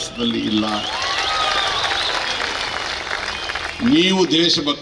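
A large crowd cheers and shouts noisily.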